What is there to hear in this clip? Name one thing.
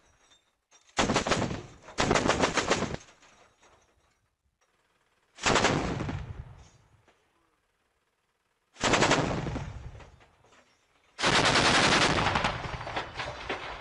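A truck-mounted heavy machine gun fires rapid bursts outdoors.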